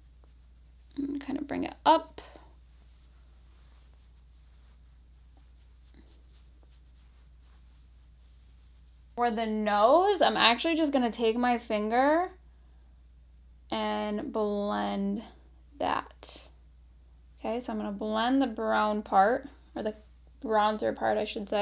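A young woman talks calmly and warmly, close to a microphone.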